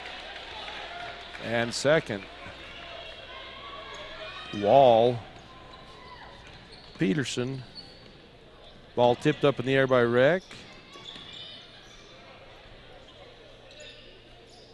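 A crowd murmurs in a large echoing arena.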